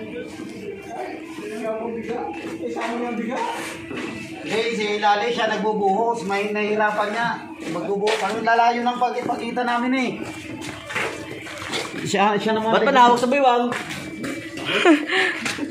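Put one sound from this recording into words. Men talk and laugh together nearby.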